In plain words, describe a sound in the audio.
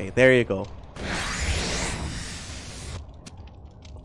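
Game spell effects whoosh and blast.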